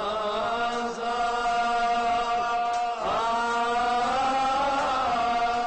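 A middle-aged man sings loudly and steadily into a microphone in an echoing hall.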